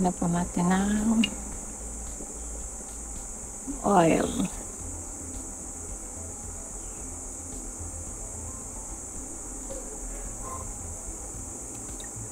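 Oil trickles quietly into a pan.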